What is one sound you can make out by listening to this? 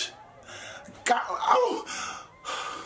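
A young woman exclaims loudly.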